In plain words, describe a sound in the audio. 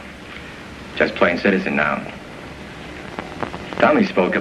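A second man answers.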